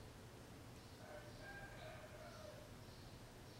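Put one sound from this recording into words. An elderly man speaks calmly and quietly, close by.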